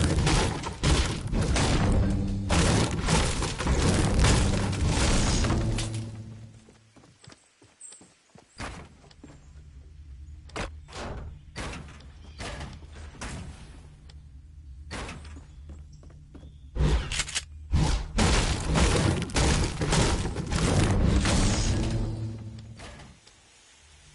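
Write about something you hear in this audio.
Pickaxe blows and building walls land with sharp knocks and thuds.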